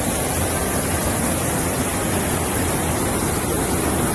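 A rocky stream rushes and splashes.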